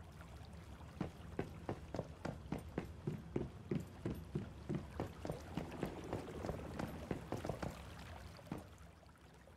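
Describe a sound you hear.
Footsteps tap quickly on metal stairs and floor.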